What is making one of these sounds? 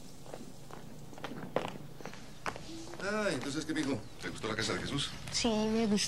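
Footsteps tap on stone outdoors.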